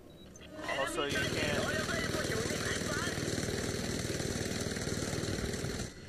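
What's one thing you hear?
A minigun fires a rapid, continuous stream of rounds.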